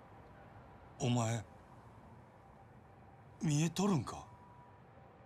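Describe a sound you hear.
A man speaks in a low, quiet voice, close by.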